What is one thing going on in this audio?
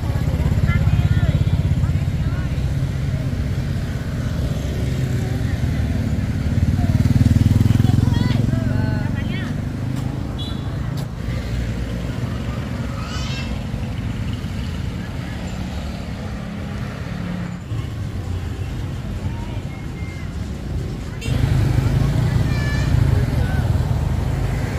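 Men and women talk in a busy outdoor market.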